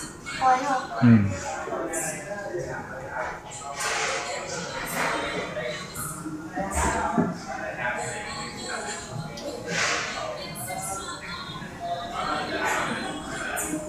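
Young boys talk at a table nearby.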